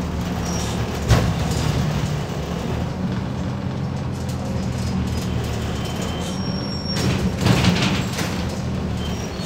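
Loose fittings rattle and knock inside a moving bus.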